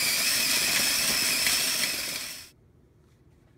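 A food processor whirs loudly.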